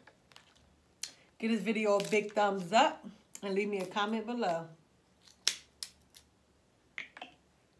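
Crab shells crack and snap in a woman's hands.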